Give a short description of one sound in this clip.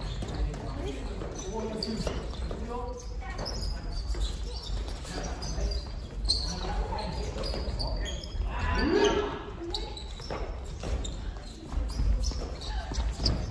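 Adults call out and talk in a large echoing hall.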